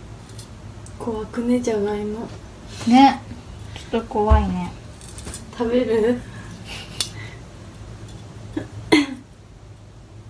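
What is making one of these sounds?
A young woman talks and laughs playfully close by.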